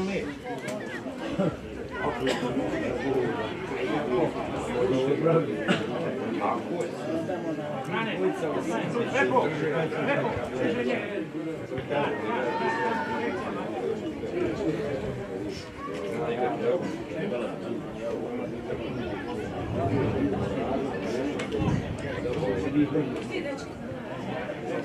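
Male footballers shout to each other across an open outdoor pitch.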